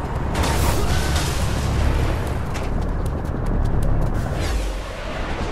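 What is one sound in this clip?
A deep rushing whoosh roars as a figure races along at great speed.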